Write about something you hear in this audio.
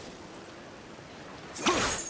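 An axe swings and strikes with a sharp thud.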